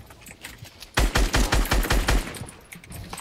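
Gunfire cracks in a rapid burst.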